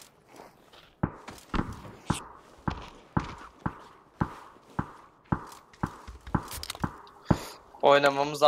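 Footsteps thud on hard ground at a steady pace.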